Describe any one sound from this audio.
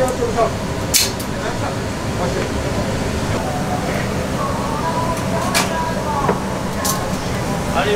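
Bowls and utensils clink now and then.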